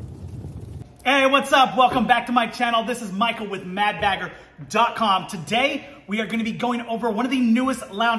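A middle-aged man talks with animation, close to a microphone.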